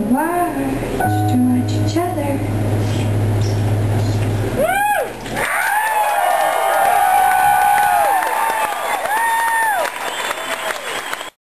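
A keyboard plays chords through loudspeakers.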